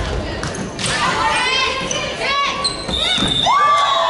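A volleyball is struck with a hand with a dull smack.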